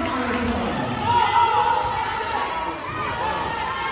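Spectators cheer loudly.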